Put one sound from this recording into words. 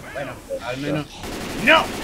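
A rifle fires a burst of gunshots.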